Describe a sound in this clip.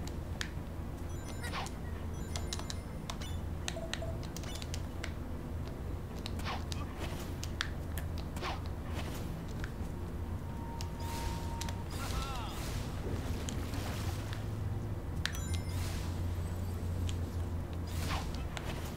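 Game effects chime and whoosh.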